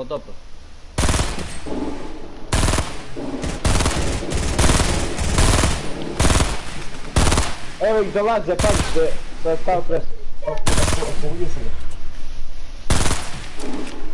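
Gunshots fire in quick bursts, close and loud.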